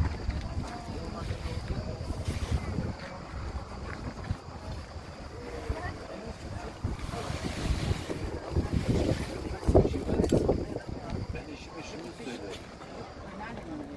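Scissors snip through moss.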